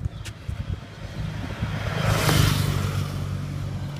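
A dog's paws patter on concrete.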